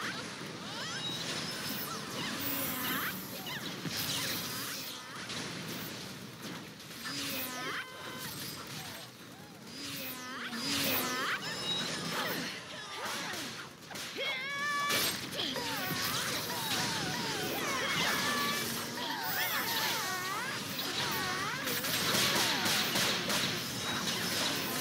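Magic blasts and fighting effects whoosh and crackle.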